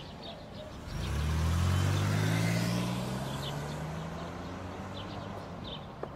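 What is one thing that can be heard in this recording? A car engine revs and accelerates away.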